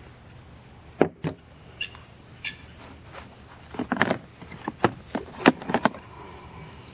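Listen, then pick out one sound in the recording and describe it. Small objects knock and rattle in a plastic case.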